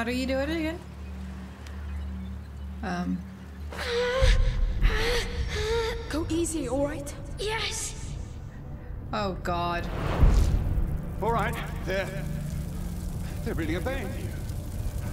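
A young woman talks with animation into a nearby microphone.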